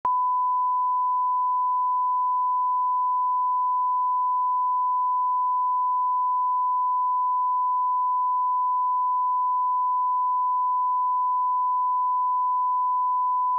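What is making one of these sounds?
A steady, high-pitched test tone beeps without a break.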